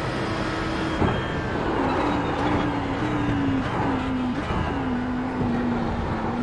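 A racing car engine drops in pitch with sharp blips as it shifts down under braking.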